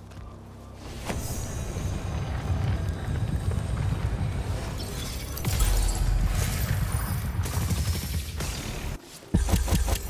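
A heavy boulder grinds and rumbles as it shifts.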